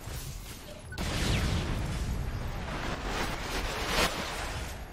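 A rifle fires rapid bursts of gunfire.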